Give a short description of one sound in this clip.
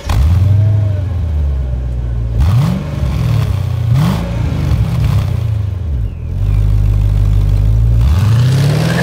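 A car engine idles with a deep, loud burble and revs sharply several times.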